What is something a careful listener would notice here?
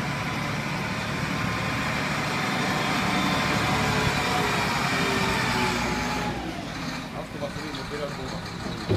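A diesel engine of a wheel loader roars and revs loudly.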